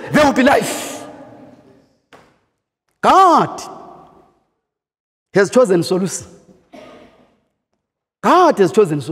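A man preaches with animation into a microphone, his voice ringing through a reverberant hall.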